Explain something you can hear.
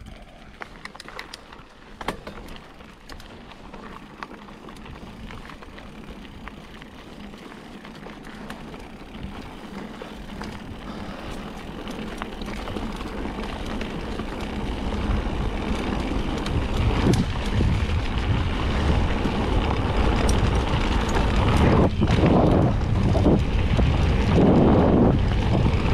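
Bicycle tyres crunch over a gravel track, growing louder as the bike speeds up.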